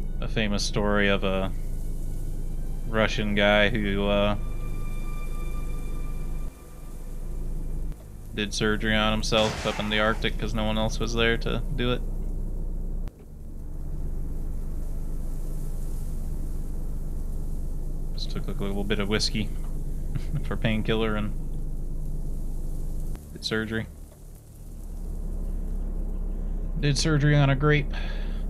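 A young man talks calmly into a close microphone, in short bursts.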